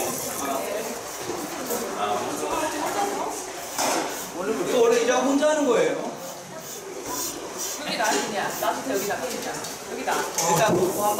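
Several men talk and laugh together nearby.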